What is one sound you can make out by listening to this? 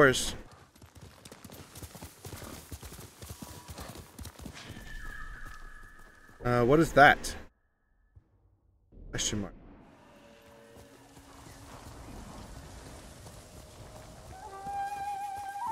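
Horse hooves thud on the ground at a gallop.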